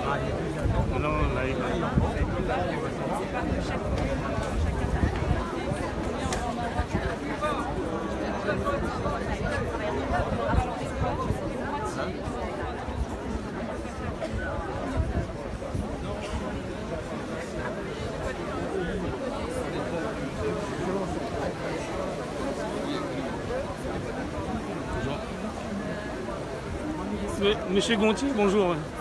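A crowd of men and women chatters all around, close by, outdoors.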